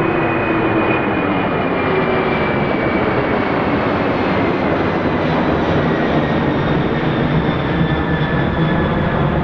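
A Boeing 747 roars low overhead as it climbs after takeoff.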